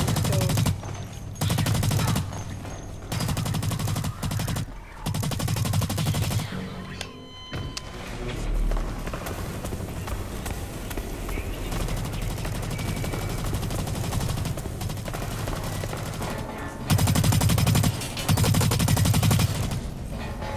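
An automatic rifle fires in rapid, loud bursts.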